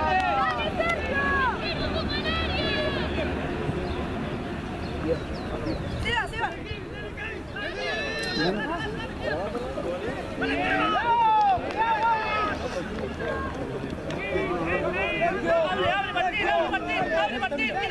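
Children shout and call out loudly outdoors.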